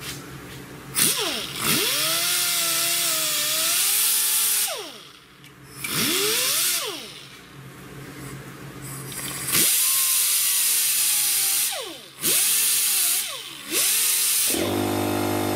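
A power tool whirs in short bursts, revving up and down.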